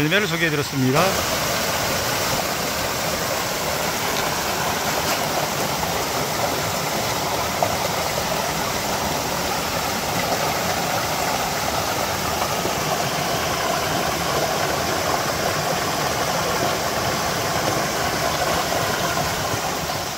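A stream rushes and splashes over rocks.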